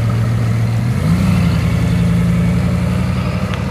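A sports car engine revs up sharply.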